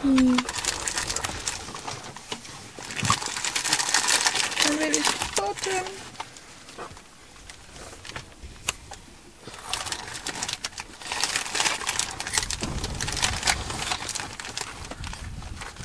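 Dry grass rustles as a large bird walks through it.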